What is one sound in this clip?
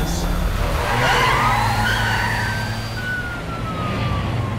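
A police siren wails.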